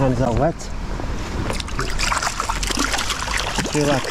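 Boots splash through shallow water.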